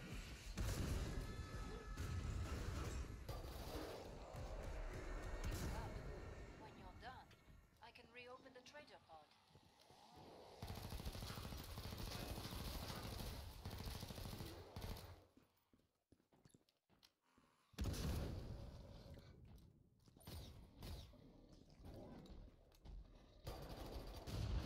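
Gunfire bursts out in rapid, loud bursts.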